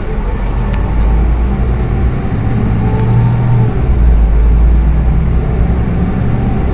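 The bus's engine grows louder as it speeds up.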